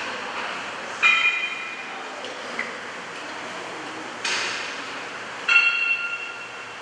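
Metal weights clank on a cable machine.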